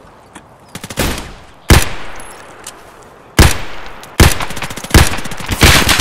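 A rifle fires loud single shots that echo outdoors.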